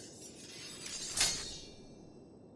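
A sword slides into its sheath with a sharp click.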